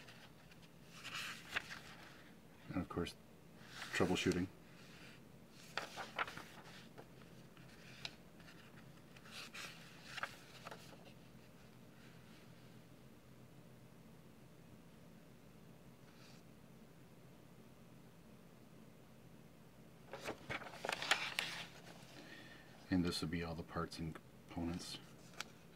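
Paper pages rustle and flap as they are turned.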